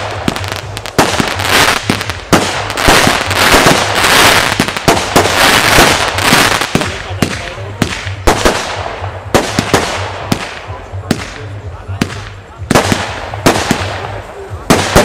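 Fireworks bang and pop sharply, one after another.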